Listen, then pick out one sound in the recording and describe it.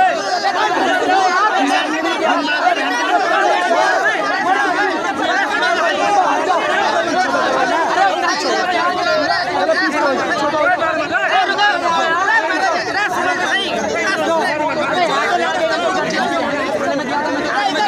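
A crowd of men shout and talk over one another close by.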